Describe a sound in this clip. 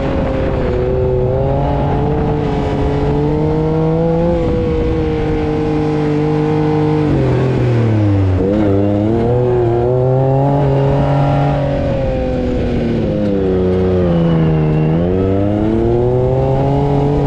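An engine roars steadily close by, rising and falling in pitch as it revs.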